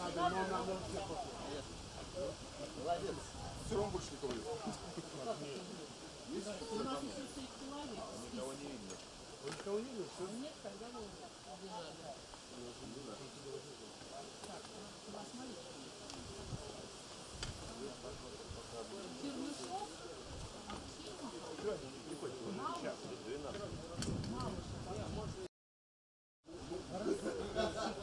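A group of men and women chat nearby outdoors.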